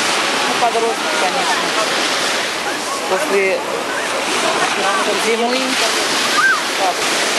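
Children and adults shout and chatter in the distance outdoors.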